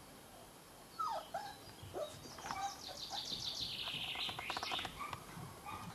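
A cocker spaniel puppy whimpers.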